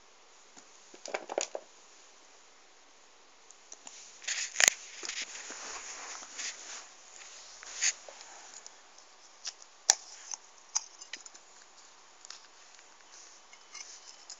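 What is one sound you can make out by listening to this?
Small plastic toys rustle and clatter as a hand handles them.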